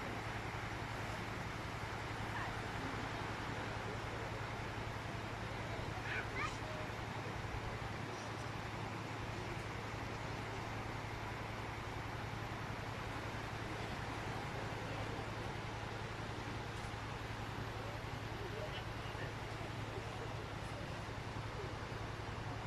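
Small waves break and wash steadily onto a beach.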